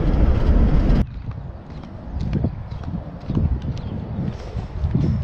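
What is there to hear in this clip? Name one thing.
Flip-flops slap on a concrete sidewalk with each step.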